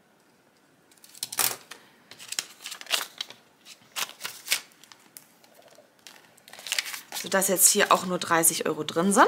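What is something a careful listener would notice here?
Paper banknotes rustle and crinkle as they are handled.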